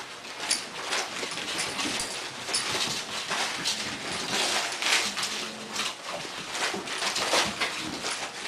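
A large dog snorts and snuffles while playing with a puppy.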